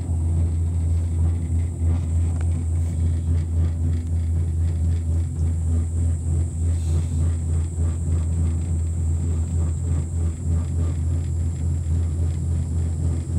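A cable car hums and rumbles steadily as it glides along its cable.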